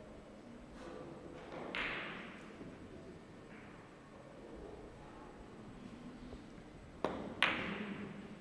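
Billiard balls click sharply against each other and the cushions.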